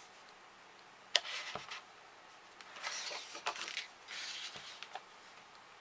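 Paper rustles and slides against a table.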